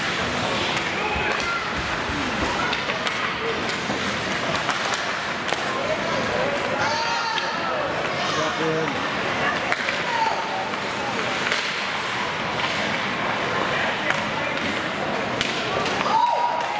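Skates scrape and carve across ice in a large echoing rink.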